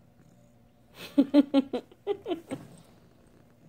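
Newborn kittens mew and squeak.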